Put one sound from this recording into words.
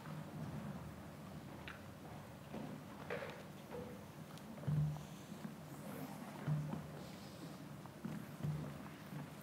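An elderly woman speaks calmly into a microphone in a large hall.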